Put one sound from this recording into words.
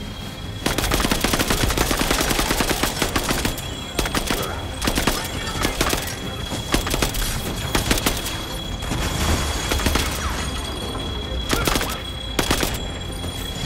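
Rapid gunfire crackles and rattles.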